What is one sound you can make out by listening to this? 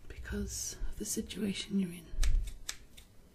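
A young woman whispers softly, very close to the microphone.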